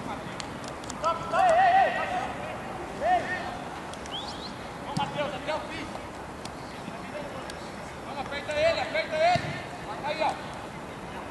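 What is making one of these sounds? Young men shout to each other outdoors across an open pitch.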